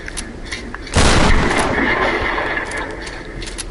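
Wooden boards crash and splinter loudly.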